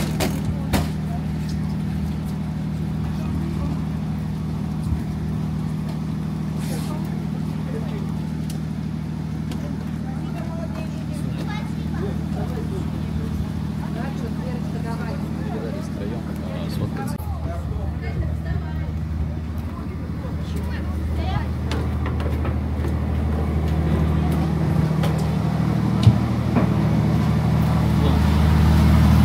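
A ship's engine hums steadily at a low pitch.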